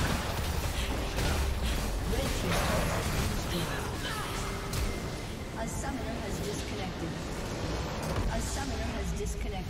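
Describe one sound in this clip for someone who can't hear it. Video game spell effects crackle and clash in a busy battle.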